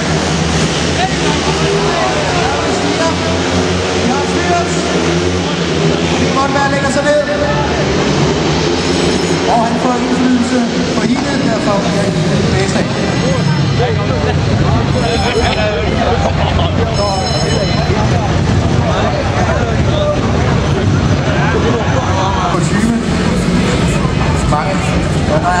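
A crowd of spectators chatters nearby in a large echoing hall.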